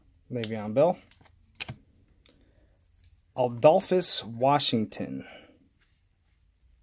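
Trading cards slide and rustle softly against each other.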